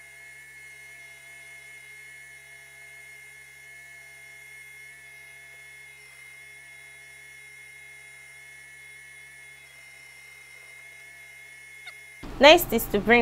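A sewing machine hums steadily.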